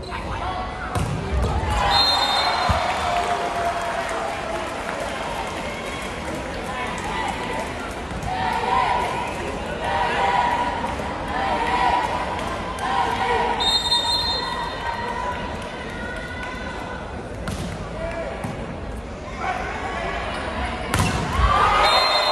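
A volleyball is struck hard with loud smacks in an echoing hall.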